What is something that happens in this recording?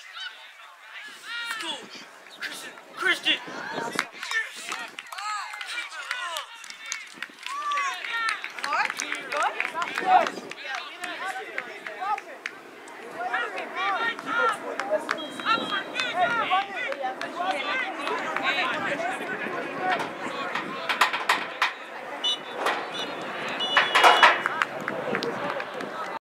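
Young players shout to each other far off across an open field.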